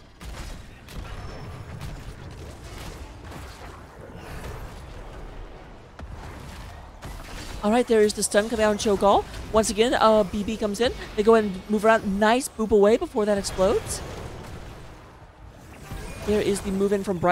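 Magic blasts and clashing weapons ring out in a game battle.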